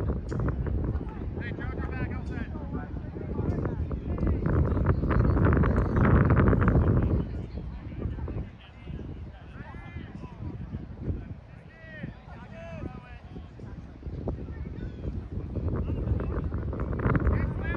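A group of people calls out faintly in the distance across an open field.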